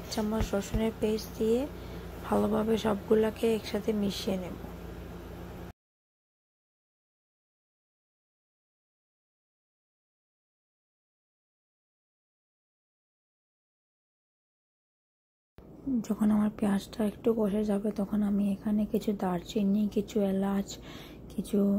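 A metal spoon scrapes and stirs in a pan.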